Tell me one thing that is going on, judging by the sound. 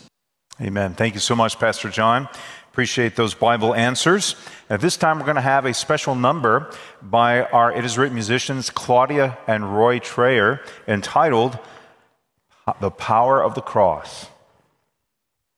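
A middle-aged man speaks with animation into a microphone in a large room.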